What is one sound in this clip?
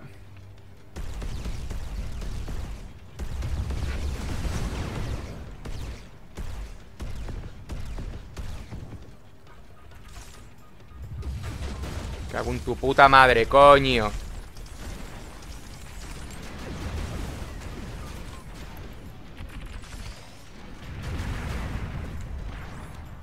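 Robot thrusters hum low and steadily in a video game.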